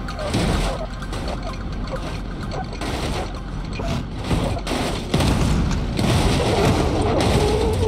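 A car tumbles and scrapes along asphalt.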